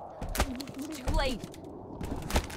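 A young girl speaks urgently, close by.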